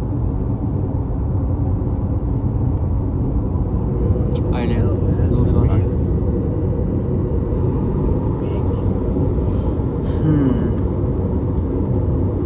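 A car's engine and tyres rumble steadily on a smooth road, heard from inside the car.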